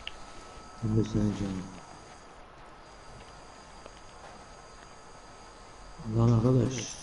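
A man talks casually into a microphone, close by.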